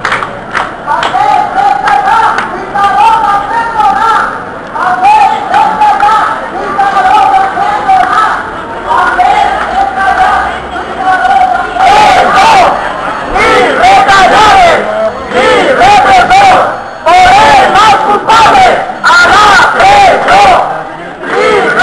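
A large crowd chants and sings loudly outdoors.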